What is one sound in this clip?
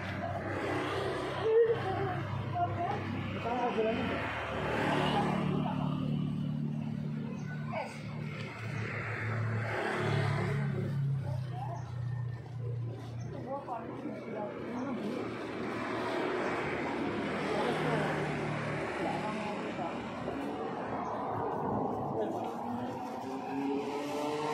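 Men and women talk nearby outdoors.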